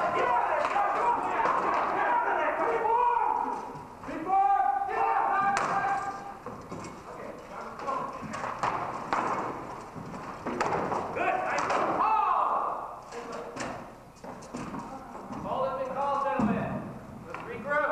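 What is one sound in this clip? Wooden weapons clack and knock together in sparring.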